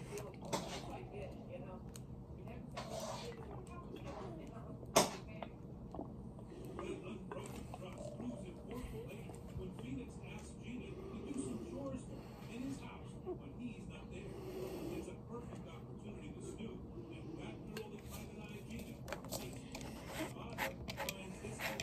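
A plastic bottle crackles and taps in a hand.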